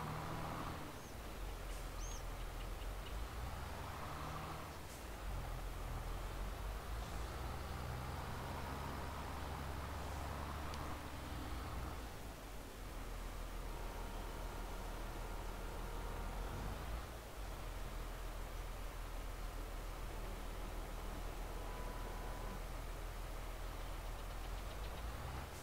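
A tractor engine rumbles steadily, revving up and down as it drives.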